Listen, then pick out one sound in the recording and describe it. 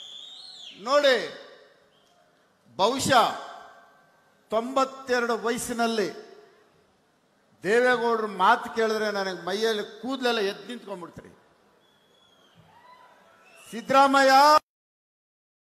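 A man speaks forcefully into a microphone over loudspeakers, in bursts with pauses.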